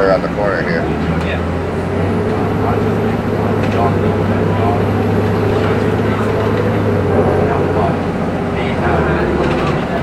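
A bus engine revs louder as it accelerates.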